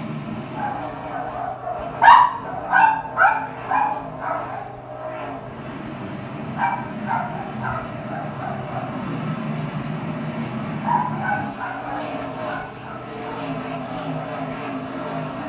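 Race car engines roar steadily through a television speaker.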